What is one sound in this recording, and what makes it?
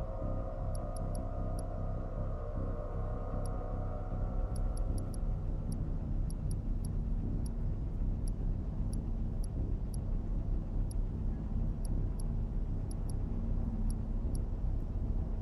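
Short electronic menu clicks tick again and again.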